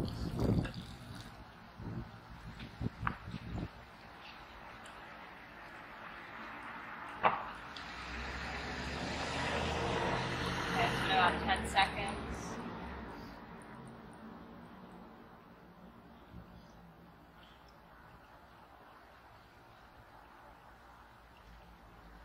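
Water trickles into a cup.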